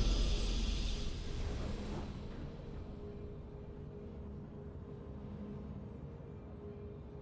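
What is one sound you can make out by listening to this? A triumphant game fanfare rings out and slowly fades.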